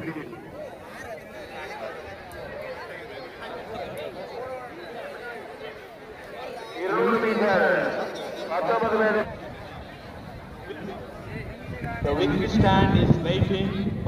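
A crowd of children and adults chatter outdoors.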